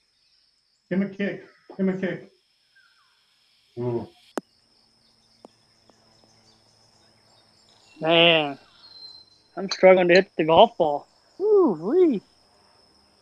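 A man talks nearby with animation.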